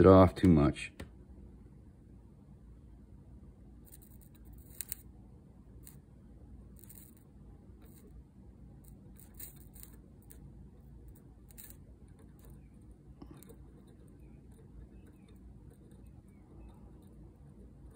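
Solder sizzles and crackles faintly under a hot iron.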